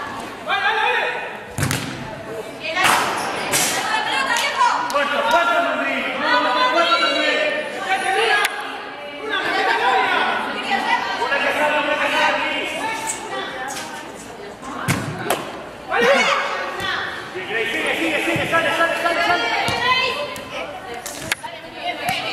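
Young women shout and call to each other in a large echoing hall.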